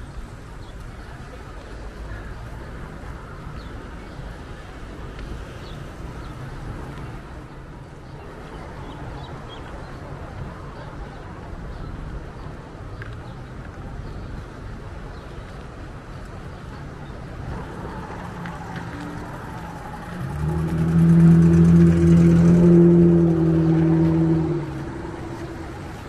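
Traffic drives by on a nearby road outdoors.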